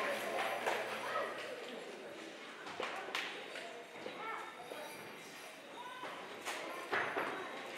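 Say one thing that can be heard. Young children chatter and call out in a large echoing hall.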